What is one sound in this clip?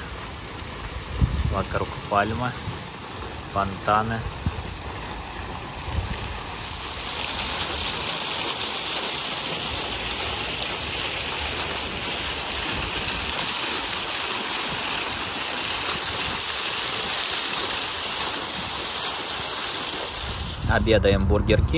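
Water splashes steadily from a fountain.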